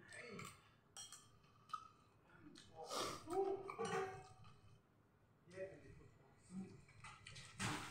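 A metal spoon scrapes and clinks against a ceramic plate.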